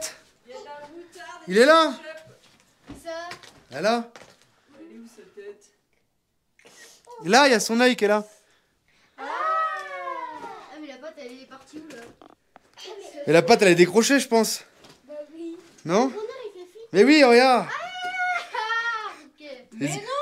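Children talk and exclaim excitedly nearby.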